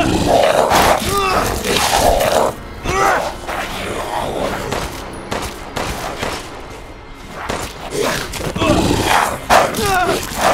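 A monster growls and roars.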